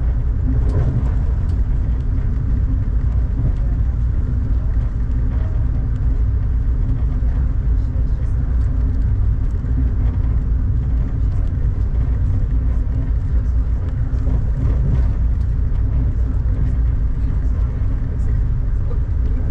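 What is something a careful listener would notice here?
A vehicle rumbles steadily as it travels at speed.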